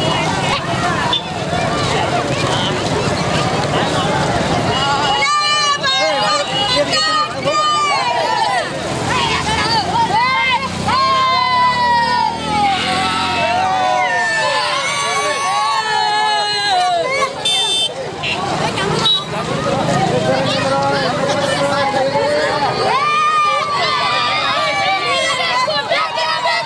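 A crowd of boys and young men shout and chant loudly outdoors.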